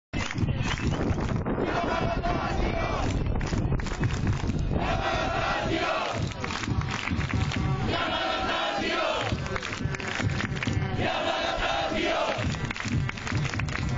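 Fans clap their hands in rhythm.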